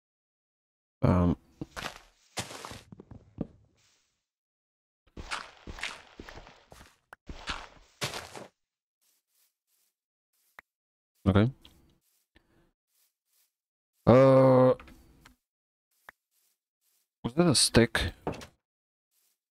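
A man talks into a microphone, close up.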